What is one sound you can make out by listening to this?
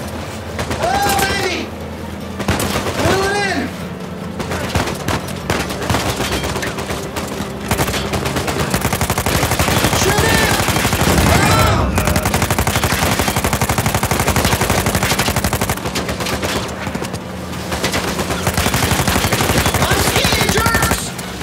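A young man exclaims loudly into a microphone.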